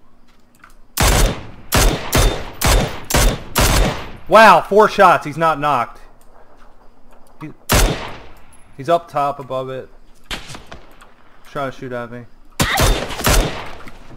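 Rifle shots crack in quick succession.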